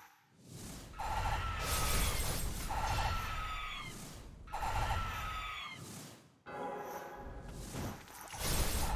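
Sword slashes and magic blasts whoosh and crash in a video game.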